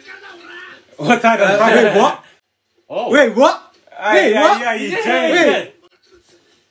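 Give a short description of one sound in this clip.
Young men laugh loudly and excitedly, close by.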